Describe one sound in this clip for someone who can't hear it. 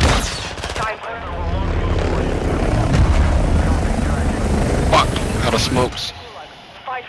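A helicopter's rotor thumps and roars loudly.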